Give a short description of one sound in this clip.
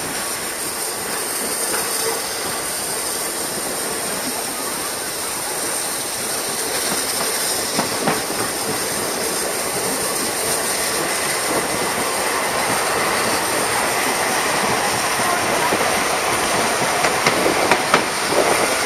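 Wind rushes steadily past.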